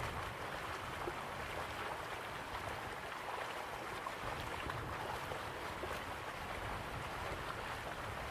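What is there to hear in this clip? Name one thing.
A waterfall rushes and splashes steadily.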